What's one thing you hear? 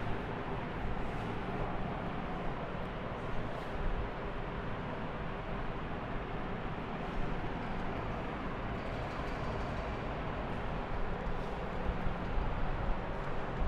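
A felt eraser rubs across a whiteboard.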